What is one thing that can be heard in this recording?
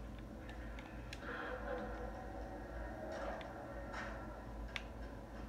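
Video game sounds play from a television speaker, with a low rumble and sharp clicks.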